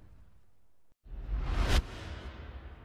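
A whooshing sound effect swells and cuts off.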